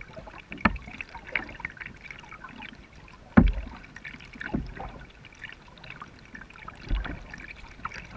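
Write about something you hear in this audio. A kayak paddle dips and splashes in calm river water.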